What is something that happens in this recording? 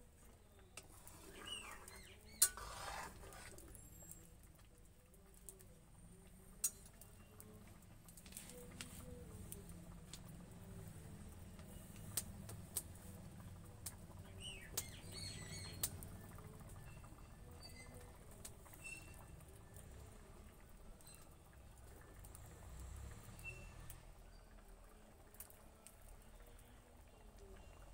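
A wood fire crackles under a pot.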